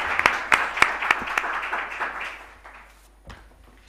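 An audience claps in a room.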